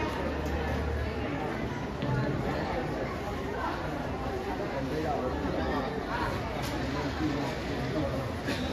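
A crowd of spectators chatters in a large, echoing hall.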